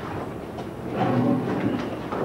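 A chair creaks and scrapes.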